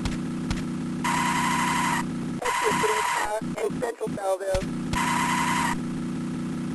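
A police siren wails in short bursts.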